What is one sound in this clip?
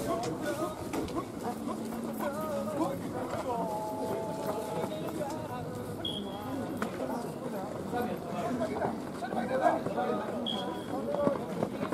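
Many young men call out and shout encouragement outdoors.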